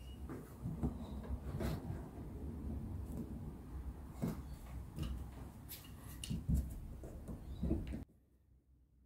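Wooden boards knock and bump as hands shift them.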